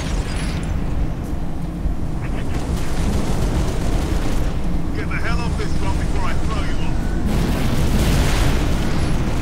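An energy weapon fires rapid zapping bolts.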